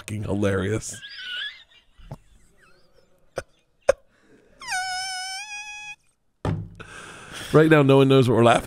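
A bearded man laughs heartily into a close microphone.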